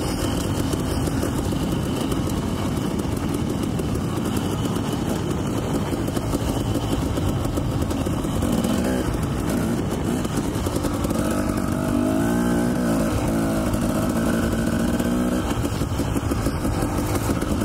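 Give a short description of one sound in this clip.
A dirt bike engine revs loudly and close, rising and falling.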